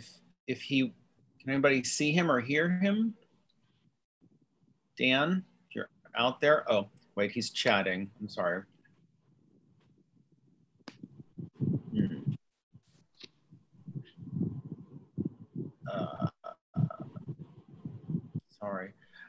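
A middle-aged man speaks calmly and thoughtfully, heard through an online call.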